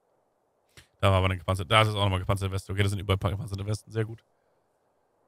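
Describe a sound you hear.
A man speaks into a microphone, close and with animation.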